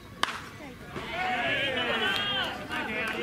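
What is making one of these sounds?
Men shout and cheer outdoors.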